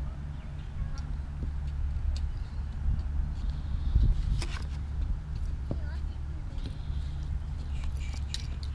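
Small metal trinkets clink softly as a hand picks through them.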